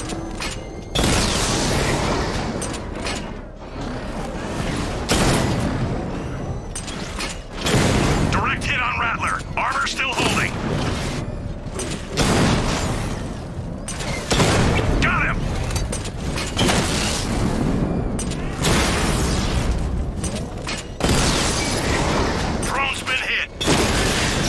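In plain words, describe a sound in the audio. A cannon fires in loud bursts.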